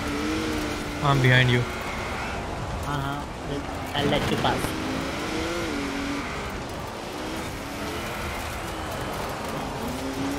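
Tyres skid and crunch on gravel.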